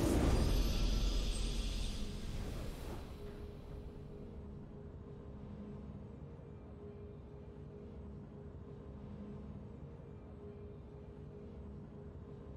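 Quiet triumphant game music plays.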